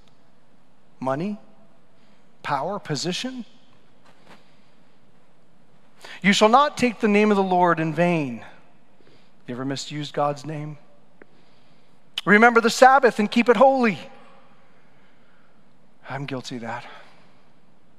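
A man preaches with animation into a microphone, pausing between phrases.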